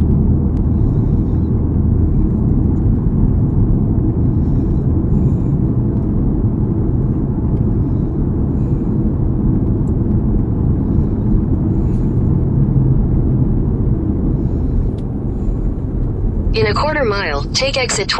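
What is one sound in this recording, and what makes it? A car engine hums with steady road rumble inside a moving car.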